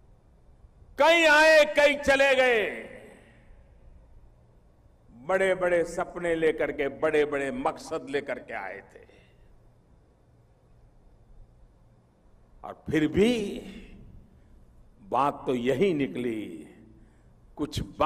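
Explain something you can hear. An elderly man speaks forcefully into a microphone, his voice carrying over loudspeakers with pauses between phrases.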